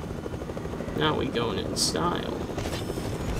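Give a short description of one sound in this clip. A young man speaks into a microphone, close and casual.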